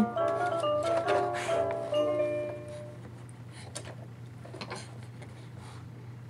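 A baby taps buttons on a toy.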